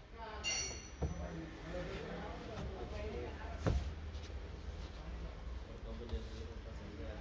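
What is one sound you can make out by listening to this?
Hands thump against a panel.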